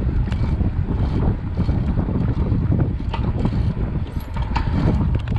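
A bicycle rattles and clicks over the road.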